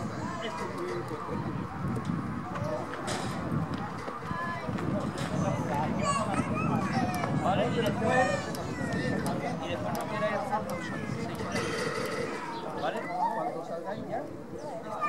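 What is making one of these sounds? A propeller plane's engine drones steadily as the plane lands and rolls along a runway.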